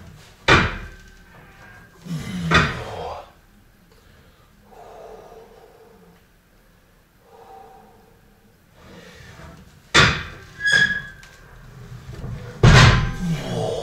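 A man breathes hard and grunts with effort.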